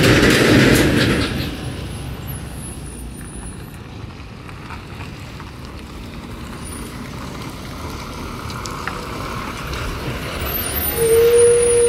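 A diesel bus drives up and passes close by.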